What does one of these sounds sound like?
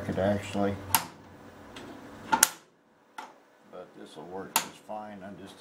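Metal parts click and knock as a hand adjusts a machine.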